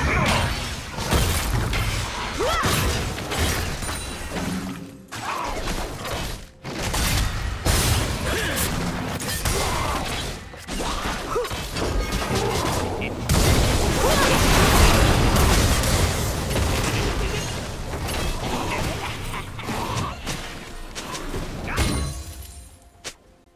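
Magic spells burst and crackle in a busy fight.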